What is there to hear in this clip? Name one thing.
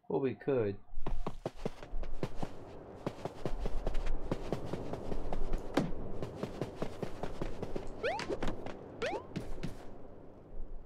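Quick light footsteps patter across a floor.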